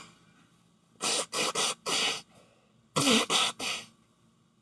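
A middle-aged woman blows her nose into a tissue.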